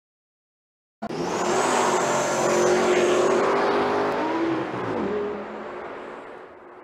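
Powerful car engines roar as cars accelerate away.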